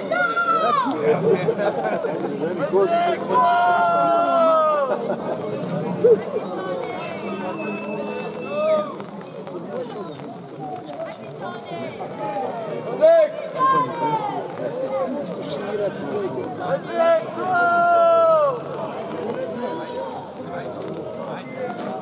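A crowd of men and women shouts and calls out nearby outdoors.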